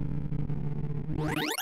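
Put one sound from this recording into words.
A quick electronic sweep rises sharply in pitch at the end.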